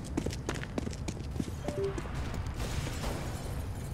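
Footsteps tap on a hard floor in an echoing space.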